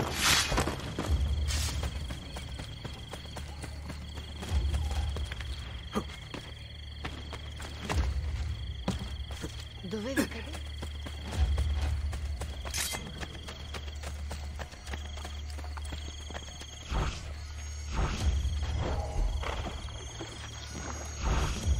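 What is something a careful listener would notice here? Footsteps run quickly over ground.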